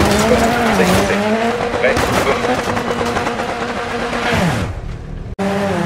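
A rally car crashes and tumbles with heavy thuds.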